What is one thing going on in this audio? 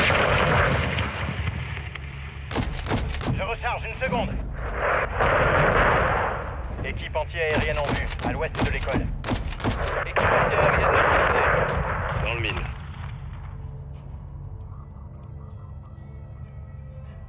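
Heavy explosions boom one after another.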